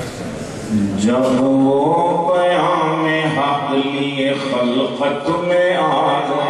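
A middle-aged man chants in a melodic voice through a microphone.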